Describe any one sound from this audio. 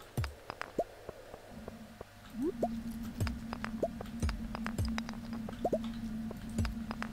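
Short, sharp clinks of a pickaxe striking rocks ring out in a video game.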